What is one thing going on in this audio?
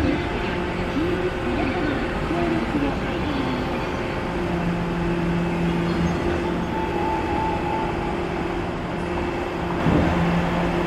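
An electric train hums steadily as it pulls away and fades into the distance.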